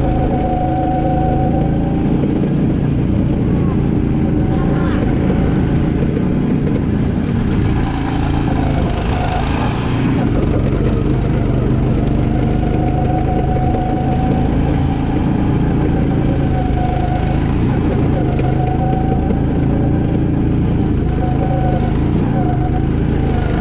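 A go-kart engine buzzes loudly up close, revving as the kart speeds around bends.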